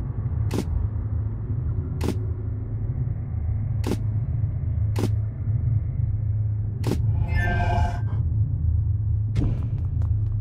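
Short game menu clicks sound several times.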